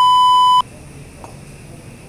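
A kettlebell clunks as a man grabs it off the floor.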